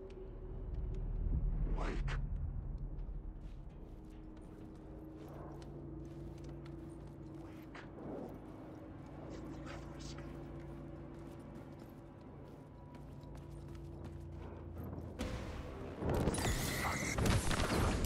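Footsteps crunch over debris.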